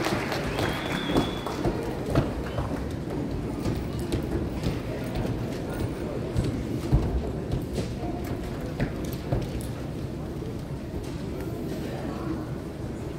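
A piano plays in a large echoing hall.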